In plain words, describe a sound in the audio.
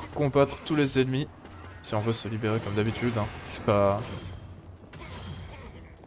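Game weapons strike and clash in a fight.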